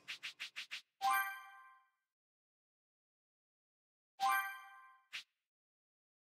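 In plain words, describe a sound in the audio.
A bright chime rings as a menu opens.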